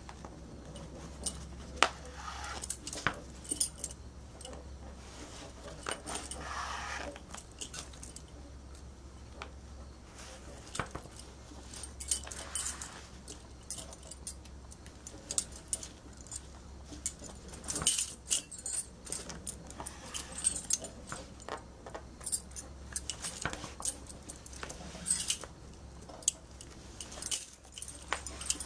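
Fabric rustles and shifts as it is folded and smoothed by hand.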